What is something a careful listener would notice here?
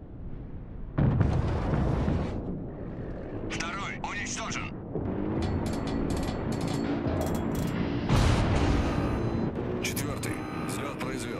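Heavy naval guns fire with deep booms.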